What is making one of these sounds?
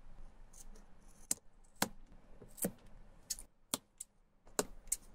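A small blade scrapes and clicks against a rubber sole.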